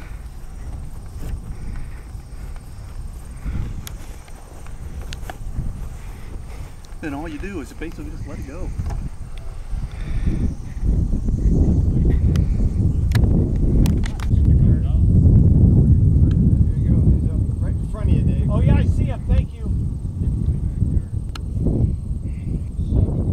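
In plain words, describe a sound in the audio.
Wind blows hard outdoors, rumbling against the microphone.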